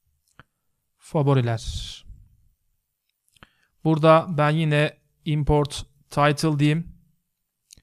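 A man speaks calmly and close to a microphone, in short phrases.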